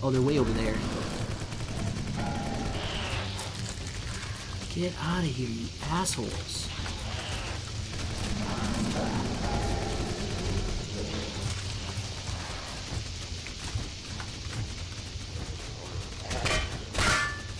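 A rifle fires in quick bursts of loud shots.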